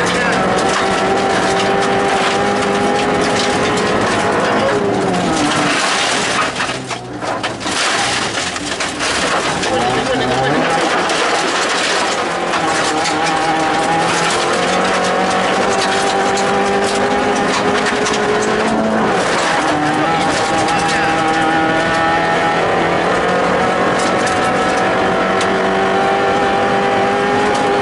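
A car engine hums steadily and shifts in pitch as the car drives.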